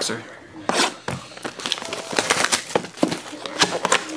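A cardboard box lid scrapes as it slides open.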